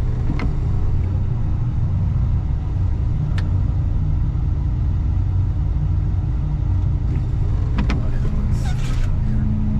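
A heavy diesel engine rumbles steadily up close.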